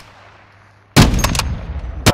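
A rifle fires a single loud, booming shot.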